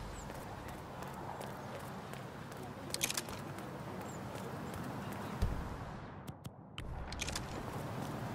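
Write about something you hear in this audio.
Footsteps tap steadily on paving.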